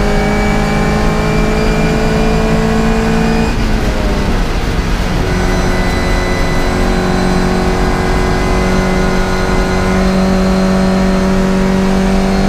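A classic Mini race car's four-cylinder engine roars at full throttle, heard from inside the cockpit.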